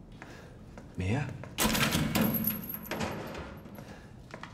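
Metal bars of a gate rattle and clank.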